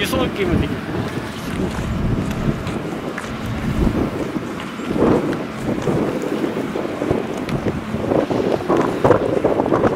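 Wind blows across an open space.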